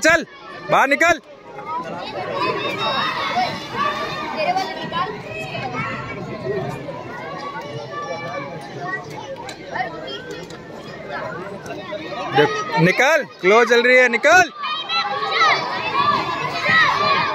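A crowd of children chatters and shouts nearby outdoors.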